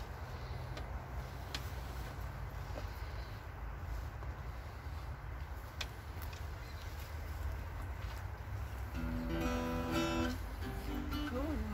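An acoustic guitar is strummed and plucked close by.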